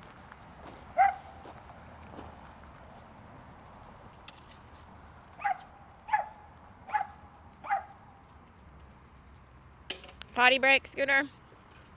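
A dog yelps in short, high barks.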